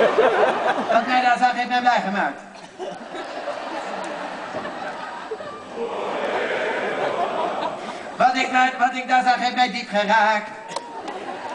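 A man speaks through a loudspeaker with animation in a large echoing hall.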